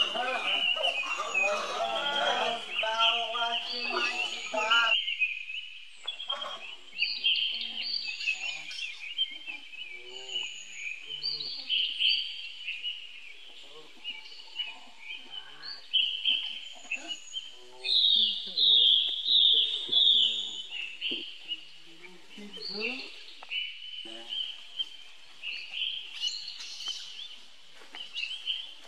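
Young monkeys squeal and chatter close by.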